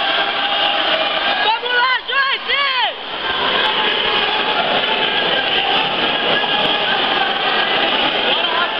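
A crowd of spectators shouts and cheers loudly in an echoing hall.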